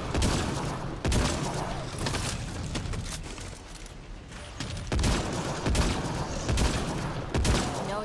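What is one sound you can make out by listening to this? Heavy gunshots boom one after another.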